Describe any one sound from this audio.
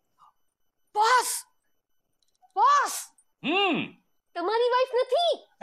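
A woman shouts loudly and with strong feeling, nearby.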